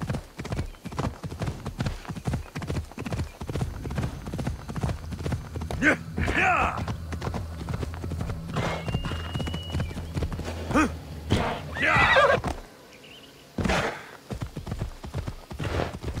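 A horse's hooves pound the ground at a steady gallop.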